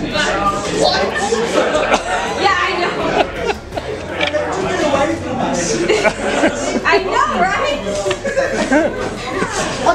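A crowd chatters and talks all around in a large room.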